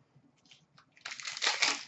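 Plastic wrapping rustles and crinkles close by.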